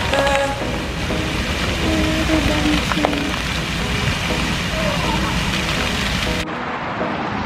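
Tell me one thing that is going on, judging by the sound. Water from fountains splashes and hisses steadily.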